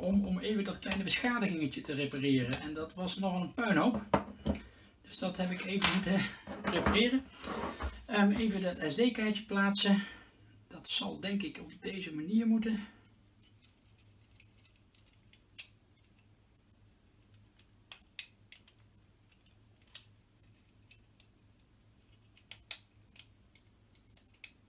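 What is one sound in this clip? A small plastic object clicks and taps.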